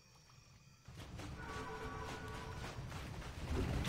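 Swords clash and spells burst in a battle.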